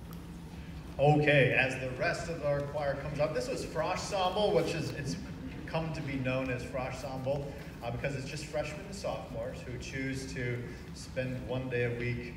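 A man speaks calmly into a microphone, heard over loudspeakers in a large hall.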